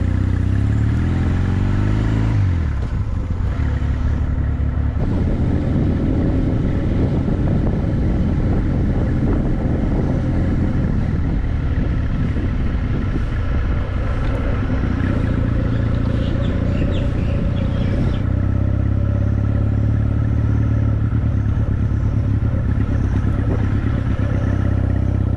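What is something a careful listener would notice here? A motorbike engine hums steadily as the bike rides along.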